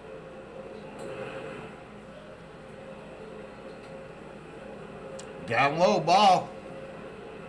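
A man talks briefly into a microphone.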